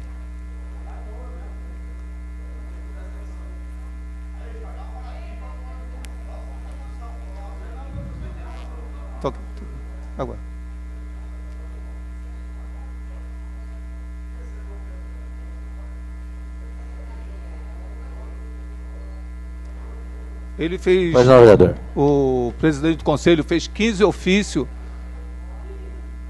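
A middle-aged man reads aloud through a microphone, at times speaking louder and with emphasis.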